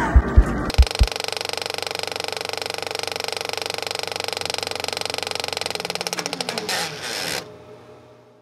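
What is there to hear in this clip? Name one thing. Television static hisses and buzzes loudly.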